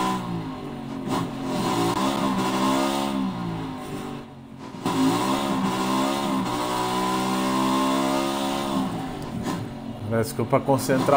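A motorcycle engine revs up and down through its gears.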